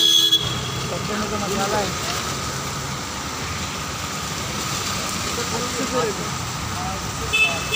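Car tyres hiss on a wet road.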